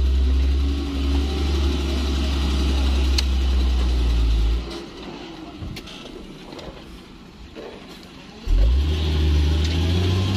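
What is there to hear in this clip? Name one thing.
Truck tyres churn and slip in thick mud.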